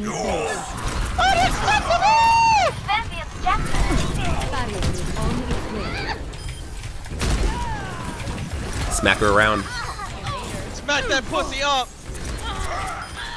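A futuristic energy gun fires rapid bursts.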